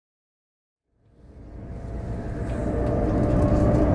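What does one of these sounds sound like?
A high-speed train rumbles along the track, heard from inside.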